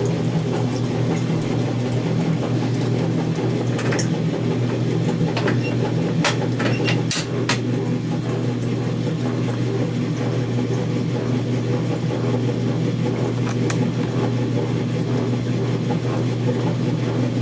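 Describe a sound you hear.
An old electric washing machine hums and whirs steadily.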